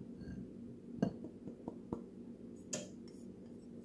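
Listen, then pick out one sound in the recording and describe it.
A bowl knocks lightly against a metal strainer.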